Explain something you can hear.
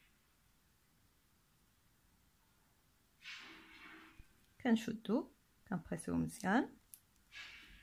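Small pliers click softly against a metal ring.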